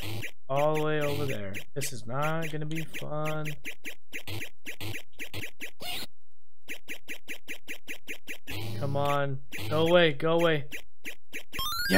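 Quick electronic beeps repeat in a steady rhythm from an arcade game.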